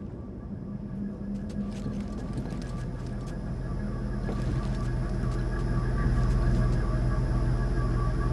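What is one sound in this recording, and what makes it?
Footsteps tread on a metal floor.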